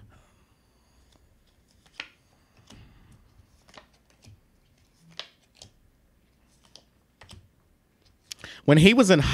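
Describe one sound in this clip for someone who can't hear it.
Playing cards tap and slide softly on a table.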